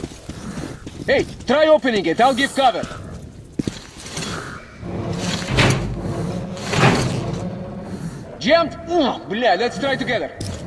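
A man speaks urgently up close.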